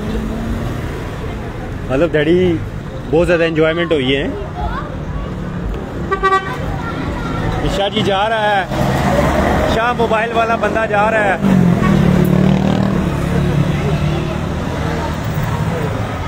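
A motorcycle engine putters past nearby.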